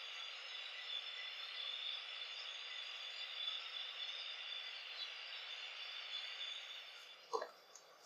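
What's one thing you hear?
Hands squish lather through wet hair.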